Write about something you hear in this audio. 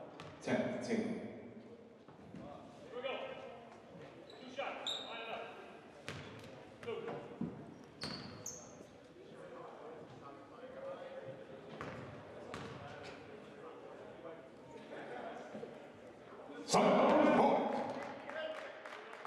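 Several men talk and call out in a large echoing hall.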